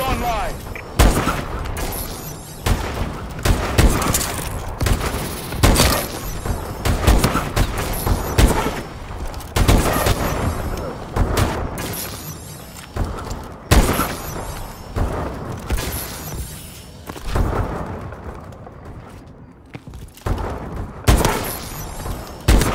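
Loud sniper rifle shots crack out again and again.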